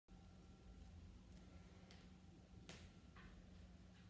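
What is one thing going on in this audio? Bare feet step softly on a wooden floor.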